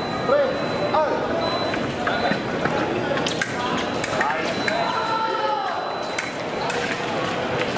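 Fencers' shoes squeak and thud on the floor.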